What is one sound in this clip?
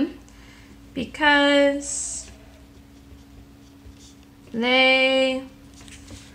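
A pen scratches softly on paper as someone writes.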